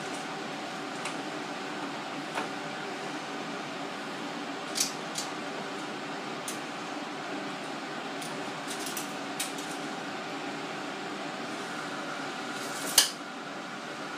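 A tape measure clicks and rattles as it is pulled out and retracted.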